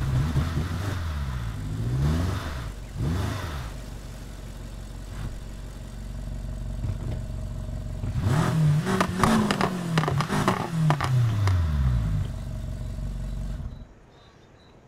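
A car engine revs up and down loudly.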